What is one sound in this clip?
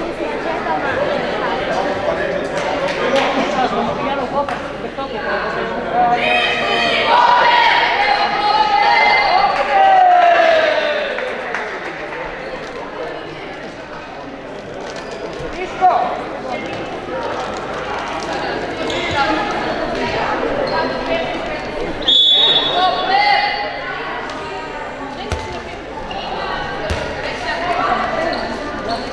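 Young women shout and call out across a large echoing hall.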